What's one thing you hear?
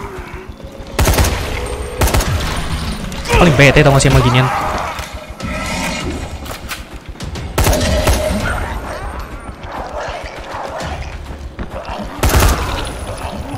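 A rifle fires sharp shots in short bursts.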